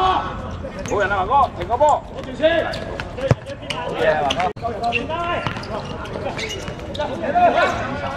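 Young men shout to each other across an open court.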